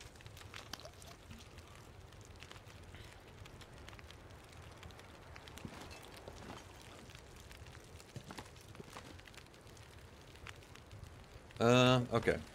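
A fire crackles softly inside a wood stove.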